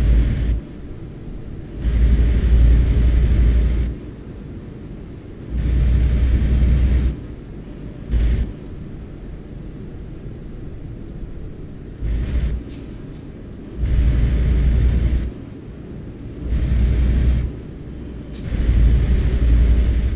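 A truck engine rumbles low, swelling loudly in repeated bursts.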